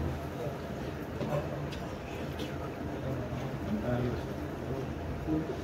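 Several men talk in a murmur nearby.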